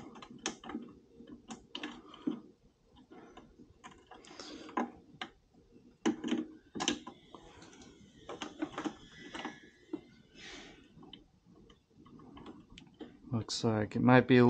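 Small metal tools click and clink against a wheel hub, close by.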